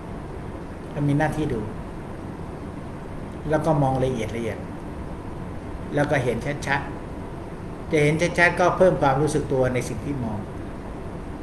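An elderly man speaks calmly into a microphone in short phrases.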